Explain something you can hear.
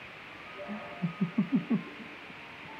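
A young man chuckles softly.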